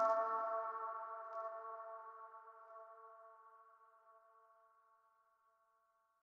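An electronic chord rings out from a synthesizer and slowly fades away.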